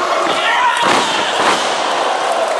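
A wrestler's body thuds onto the ring mat.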